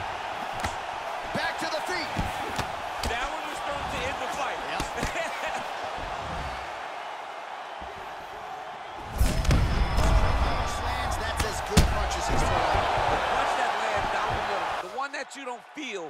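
A large crowd roars and cheers in a big arena.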